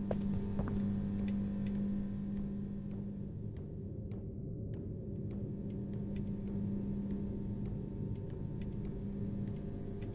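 Footsteps thud and clank softly in a narrow metal duct.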